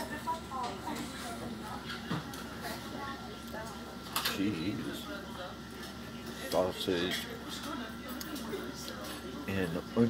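A fork scrapes and clinks against a plate.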